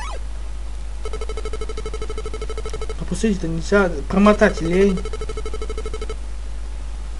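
A game's bonus counter beeps rapidly as points tally up.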